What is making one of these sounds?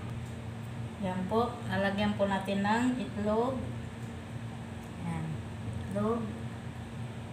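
A woman speaks briefly and calmly close by.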